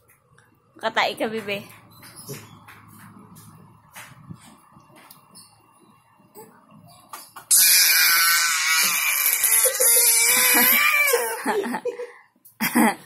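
A baby babbles and cries out close by.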